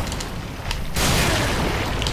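A magic blast bursts with a loud boom.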